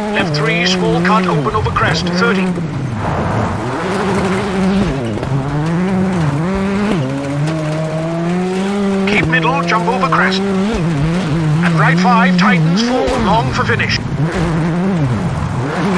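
Tyres crunch and skid over loose gravel.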